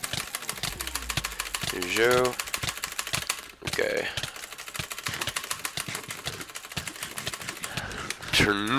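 A computer mouse clicks rapidly and steadily.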